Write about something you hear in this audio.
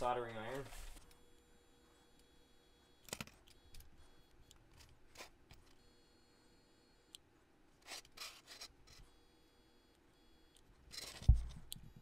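A soldering gun hums faintly.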